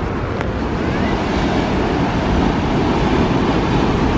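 Waves crash and churn against rocks.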